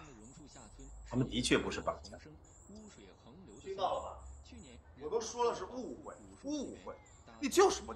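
A young woman speaks calmly.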